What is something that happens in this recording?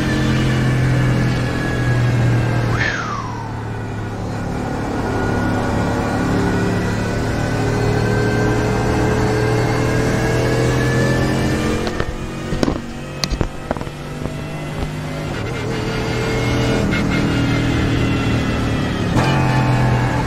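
A race car engine drones steadily and rises in pitch as the car speeds up.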